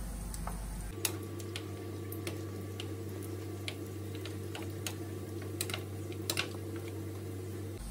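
Metal spoons clink against a frying pan.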